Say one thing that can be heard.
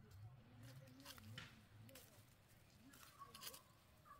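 Dry leaves of a tomato plant rustle as a hand handles the fruit.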